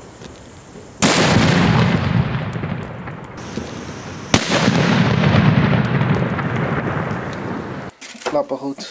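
A smoke firework roars loudly as it spews smoke.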